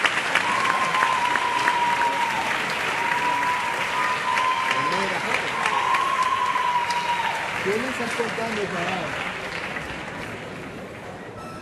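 Dancers' heels tap on a wooden stage.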